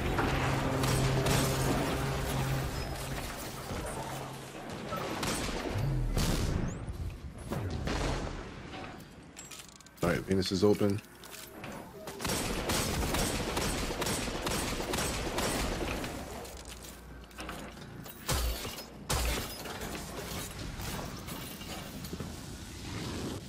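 Gunfire from a video game cracks in quick bursts.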